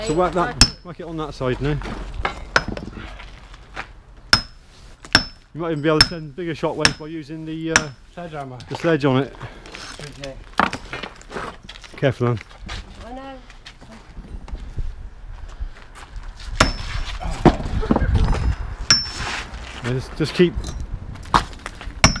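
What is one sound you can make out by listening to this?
A hammer strikes bricks with sharp, ringing knocks.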